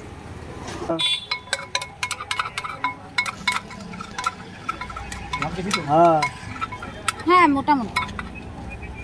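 Metal clinks and rattles as a cup is tapped against a metal pot.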